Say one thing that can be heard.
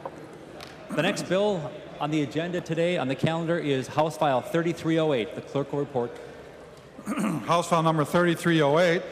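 A man speaks steadily over a microphone in a large hall.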